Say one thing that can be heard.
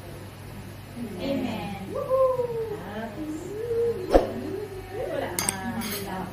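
Young women laugh and talk loudly together.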